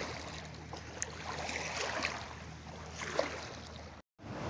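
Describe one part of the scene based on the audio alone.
Water splashes briefly.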